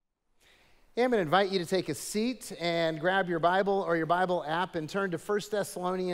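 An elderly man speaks calmly into a microphone, reading aloud.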